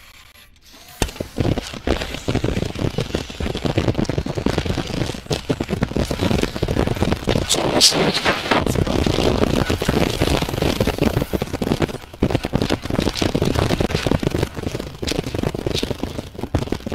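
Plastic pieces clatter and shatter as objects break apart.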